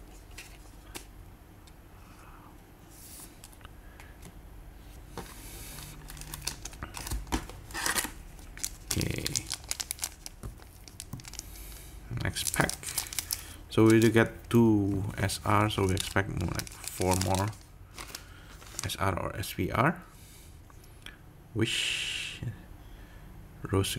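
Playing cards rustle and slide between fingers.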